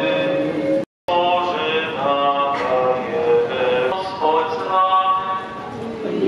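A choir of men and women sings together outdoors.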